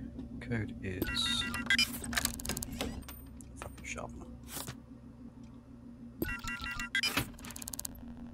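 Electronic keypad buttons beep as a code is entered.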